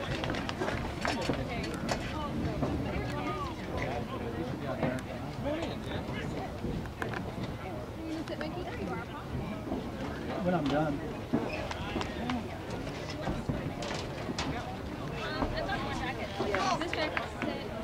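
A group of young men talk and call out together outdoors.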